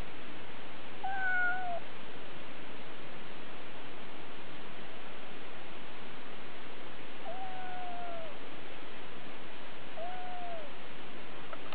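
A kitten meows several times.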